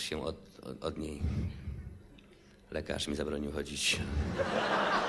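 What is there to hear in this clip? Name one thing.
A young man sings into a microphone.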